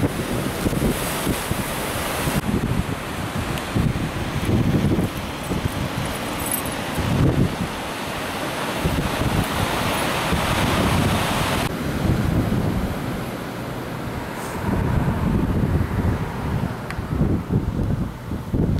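Wind gusts and buffets loudly.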